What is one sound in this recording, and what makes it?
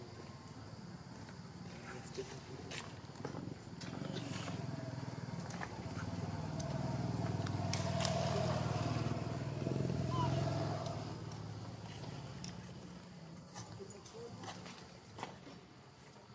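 Dry leaves rustle and crackle as small monkeys shuffle about on the ground.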